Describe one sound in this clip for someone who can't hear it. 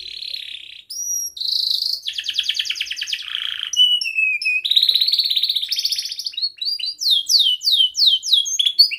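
A canary sings close by in long, rapid trills and whistles.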